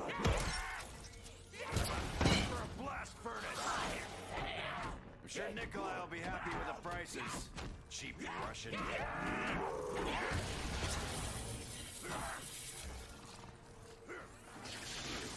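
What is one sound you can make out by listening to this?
Monsters growl and snarl close by.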